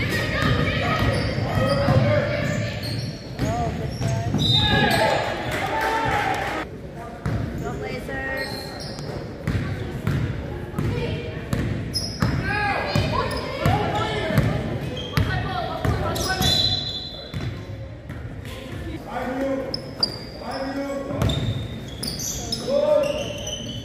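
Young female players shout and call out across a large echoing gym.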